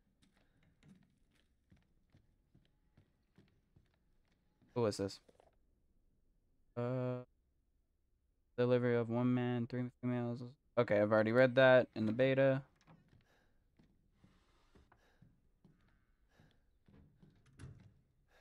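Footsteps tread softly across a wooden floor.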